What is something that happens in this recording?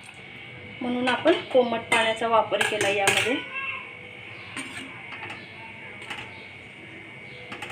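A metal ladle stirs and scrapes against a pan.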